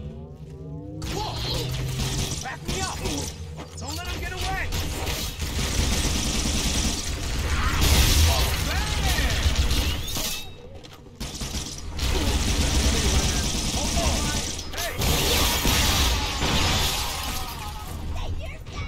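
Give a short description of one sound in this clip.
A spiky energy gun fires bursts of crystal shards.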